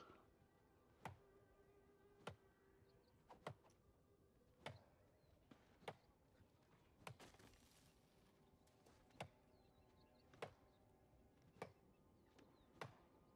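An axe chops into wood with sharp, regular knocks.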